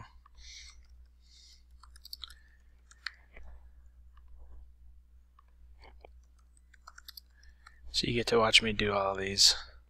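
Keys click softly on a computer keyboard.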